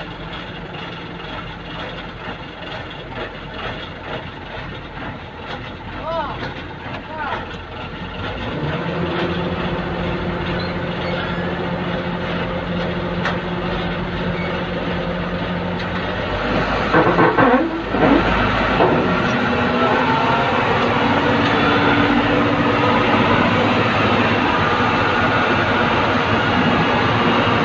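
A truck engine rumbles and idles nearby.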